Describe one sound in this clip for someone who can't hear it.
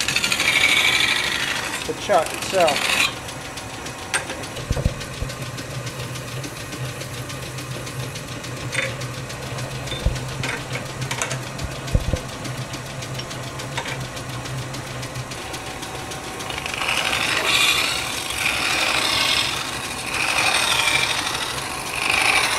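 A metal tool scrapes and squeals against a spinning metal disc.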